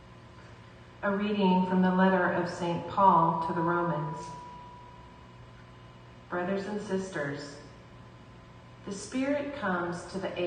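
A woman reads out calmly through a microphone in an echoing room.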